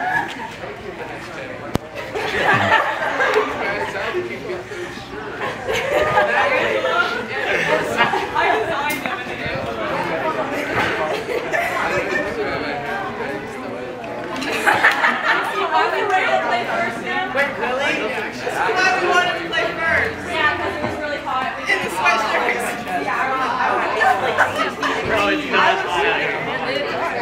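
A crowd of teenagers chatters and cheers excitedly close by.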